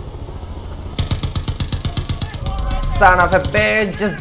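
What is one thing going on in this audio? A heavy machine gun fires a rapid burst.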